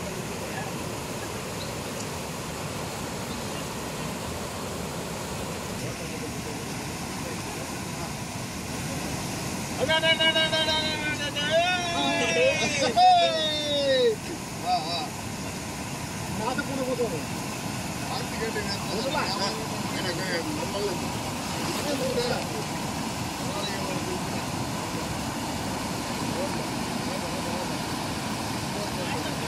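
Floodwater rushes and roars steadily.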